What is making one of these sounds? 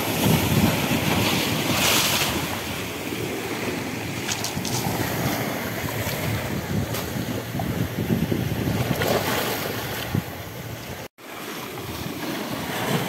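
Small waves wash and splash against rocks and shingle.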